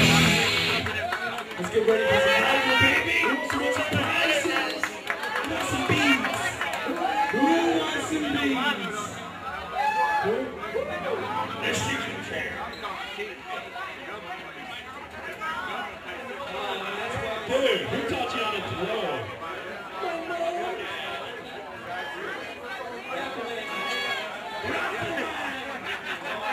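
A live band plays music through loudspeakers outdoors.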